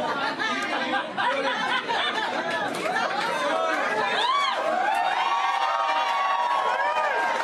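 A woman laughs softly into a microphone.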